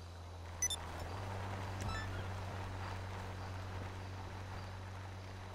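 A car engine hums as a car drives by.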